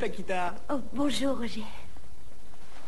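A woman speaks cheerfully nearby.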